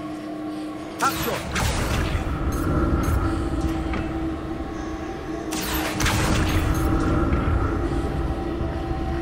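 A magical spell crackles and whooshes.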